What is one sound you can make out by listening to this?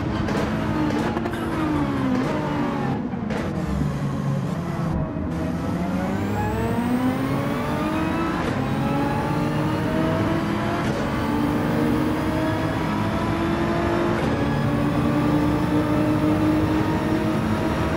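A racing car engine drops in pitch while braking, then revs up hard and climbs through the gears.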